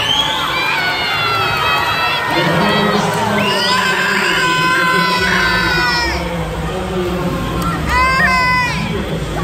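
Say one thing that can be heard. Swimmers splash and kick through the water.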